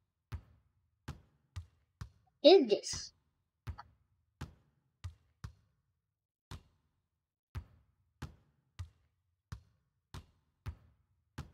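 A basketball bounces steadily on a hardwood court.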